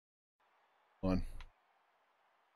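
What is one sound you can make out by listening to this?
A man speaks briefly and loudly into a microphone.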